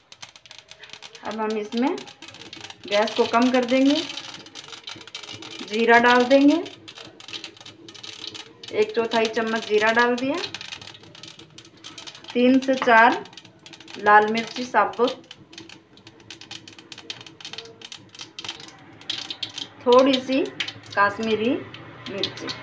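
Oil sizzles and spices crackle in a hot pan.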